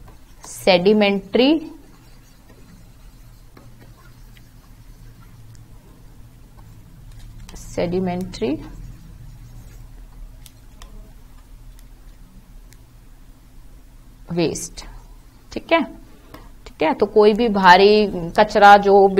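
A young woman speaks calmly into a close microphone, in short bursts with pauses.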